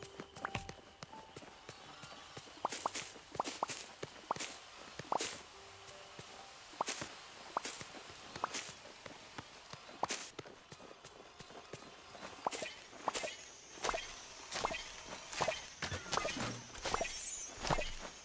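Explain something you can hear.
Quick footsteps patter along a path.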